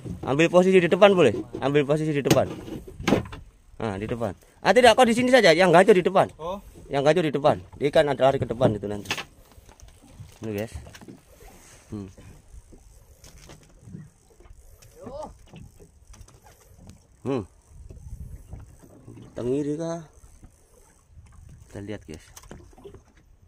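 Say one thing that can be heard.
Water laps gently against a boat's hull.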